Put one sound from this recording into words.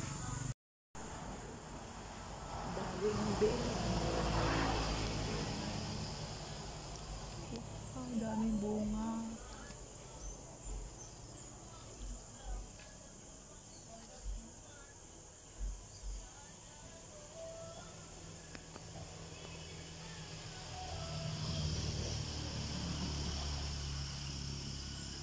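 Leaves rustle in a light wind outdoors.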